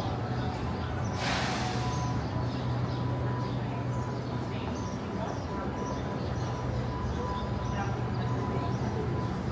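A group of adult men and women chat nearby outdoors.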